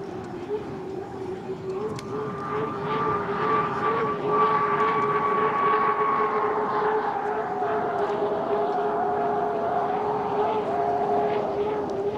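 Spray hisses off the water behind a racing boat.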